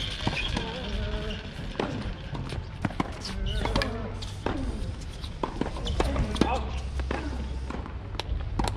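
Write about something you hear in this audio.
Tennis shoes shuffle and squeak on a hard court.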